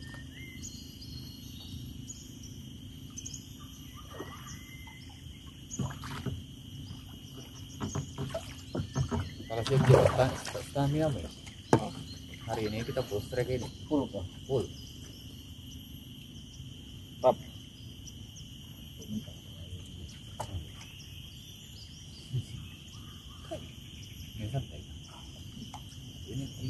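A paddle dips and splashes in calm water.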